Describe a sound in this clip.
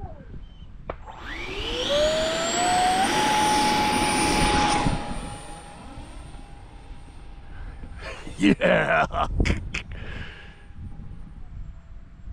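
An electric jet motor spins up to a high, steady whine and then fades as a model plane flies away.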